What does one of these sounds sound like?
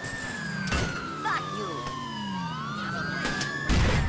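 A police siren wails nearby.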